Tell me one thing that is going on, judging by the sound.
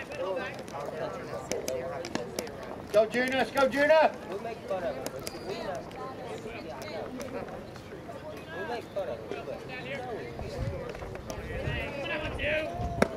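Young men and boys call out and chatter across an open field.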